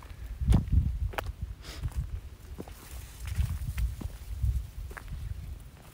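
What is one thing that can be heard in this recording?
Dry grass rustles in the wind.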